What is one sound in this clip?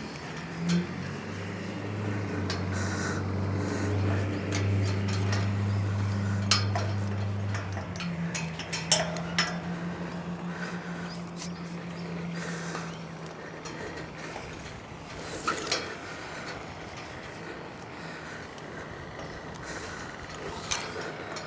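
Metal clinks and clanks faintly as a climber moves up a steel tower.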